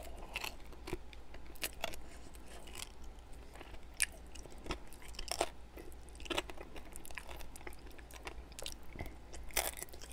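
A man licks sauce off his fingers close to a microphone.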